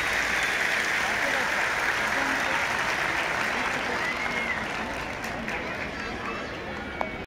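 A large crowd cheers and chatters loudly outdoors, slowly growing quieter.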